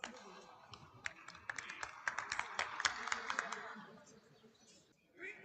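A group of people claps in a large echoing hall.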